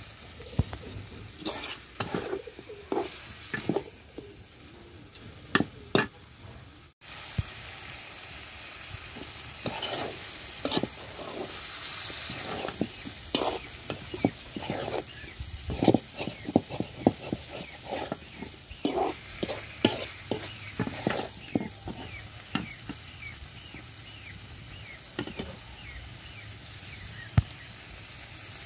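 Food sizzles in hot oil in a wok.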